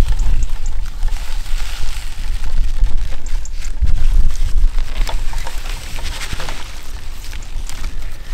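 Leafy plants rustle as they are pulled from the soil.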